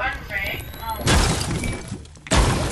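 A pickaxe swings and strikes with a whoosh.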